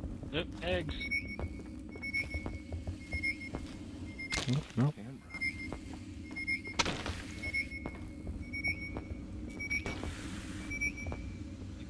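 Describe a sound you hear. A motion tracker beeps steadily at an even pace.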